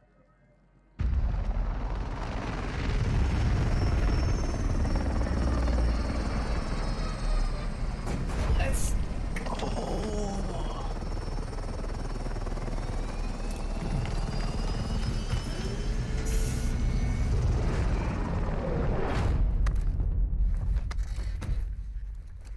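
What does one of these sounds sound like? A large military helicopter's rotors thump and roar overhead.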